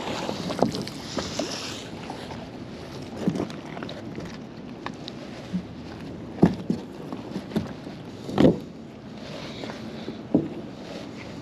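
A wet rope is hauled up out of the water, dripping and splashing.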